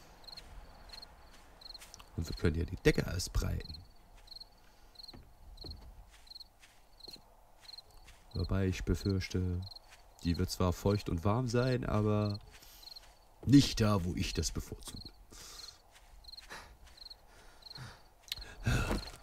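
Footsteps rustle steadily through grass.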